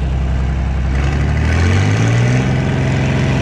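A tractor engine revs up and settles at a higher, steady speed.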